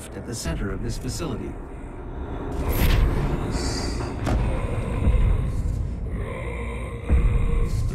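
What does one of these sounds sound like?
Molten lava rumbles deep and low.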